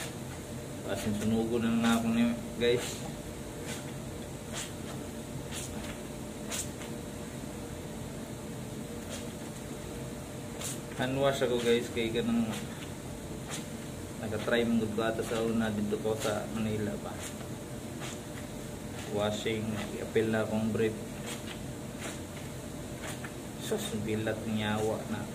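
A young man talks calmly and close by, in short bursts.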